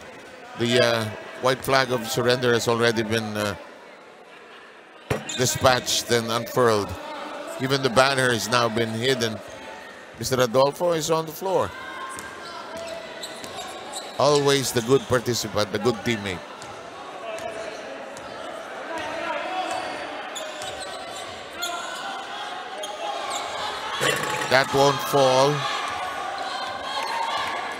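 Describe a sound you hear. Basketball shoes squeak on a wooden court.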